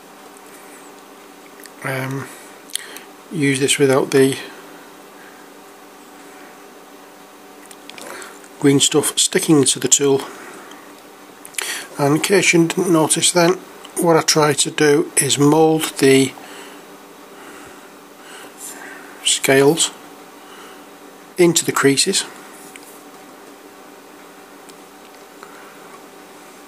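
A metal tool scrapes and taps softly against a small plastic figure.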